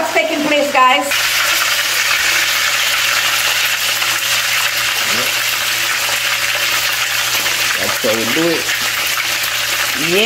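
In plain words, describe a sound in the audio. Fish sizzles in hot oil in a frying pan.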